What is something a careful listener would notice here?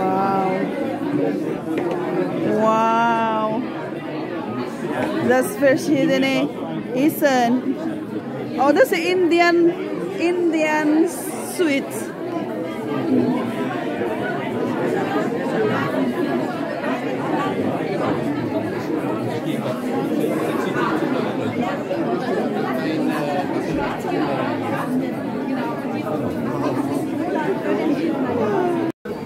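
A crowd of people chatter and talk nearby.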